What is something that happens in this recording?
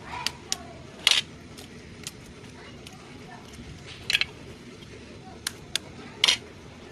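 An egg is tapped and cracks against a plate's edge.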